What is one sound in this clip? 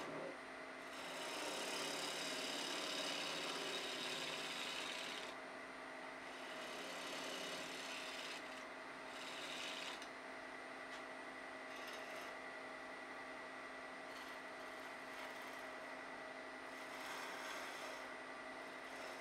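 A gouge scrapes and hisses against spinning wood.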